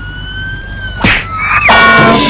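A car thuds onto a metal trailer deck.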